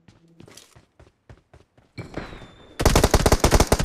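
Footsteps tap on hard ground and steps.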